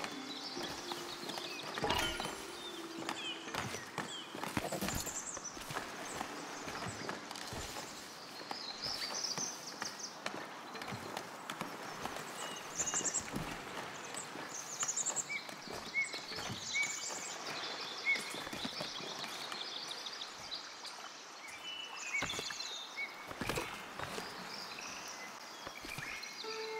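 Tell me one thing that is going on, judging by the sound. Soft interface clicks and chimes sound now and then.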